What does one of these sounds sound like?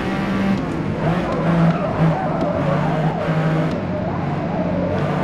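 Tyres squeal through a corner.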